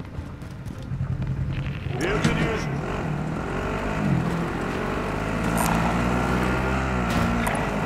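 A quad bike engine revs and roars.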